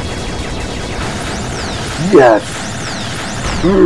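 Bright electronic chimes ring out as points are collected.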